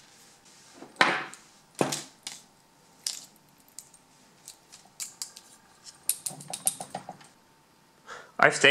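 Small metal lock parts click and clink against each other.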